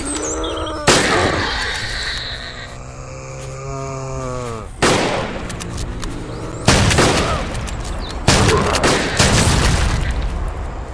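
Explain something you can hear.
Rifle shots boom in a video game, with a short echo after each.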